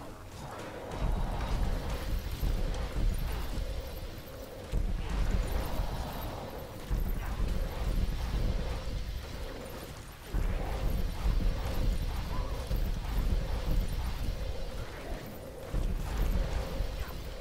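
Magical blasts crackle and boom in repeated bursts.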